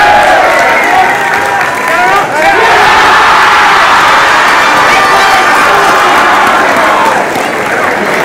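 A crowd of young men cheers and shouts loudly.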